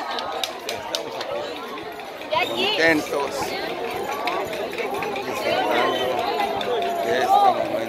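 A crowd of people chatters and cheers loudly.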